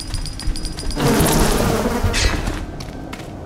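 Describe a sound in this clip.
A swarm of insects buzzes loudly.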